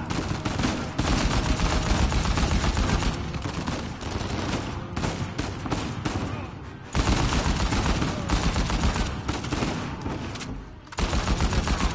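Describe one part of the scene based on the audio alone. Rapid gunfire rattles in loud, repeated bursts.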